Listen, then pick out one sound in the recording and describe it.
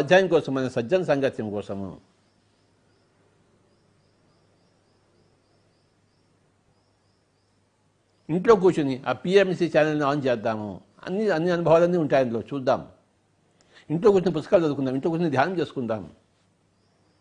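An elderly man speaks calmly and closely into a microphone, pausing between phrases.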